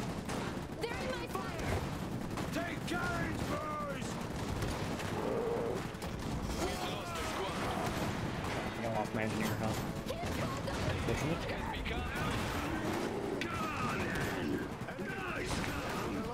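Rapid gunfire crackles and pops.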